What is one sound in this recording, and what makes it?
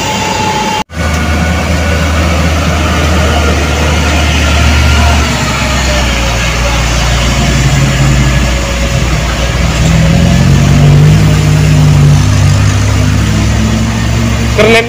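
A heavy truck engine rumbles as it climbs slowly.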